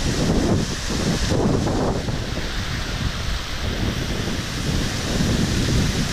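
Water rushes and splashes over rocks in a steady stream.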